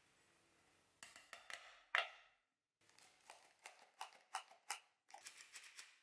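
A metal flour sifter clicks and rattles as its handle is squeezed.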